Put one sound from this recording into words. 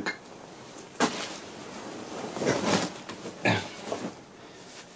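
Cloth rustles and swishes close by.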